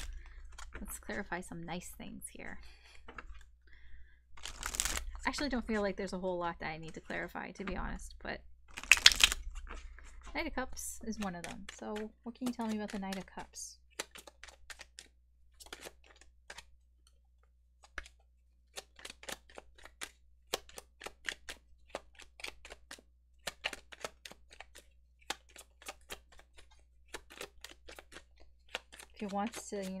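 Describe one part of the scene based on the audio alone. A young woman speaks calmly and closely into a microphone.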